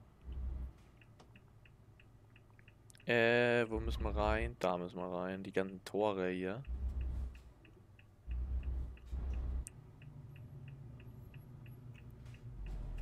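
A turn signal ticks steadily.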